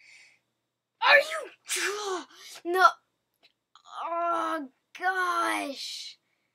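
A game character grunts in pain from falling.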